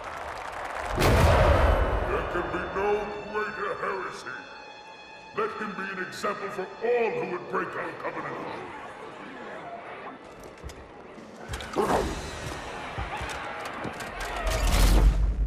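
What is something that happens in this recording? A large crowd roars and cheers in a vast echoing hall.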